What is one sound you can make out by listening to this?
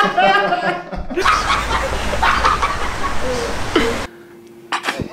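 A man speaks with animation and laughs.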